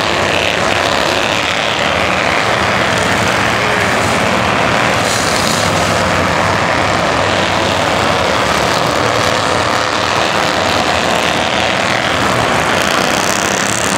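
Race car engines roar loudly as cars speed past close by.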